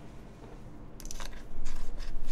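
Keyboard keys clatter as someone types.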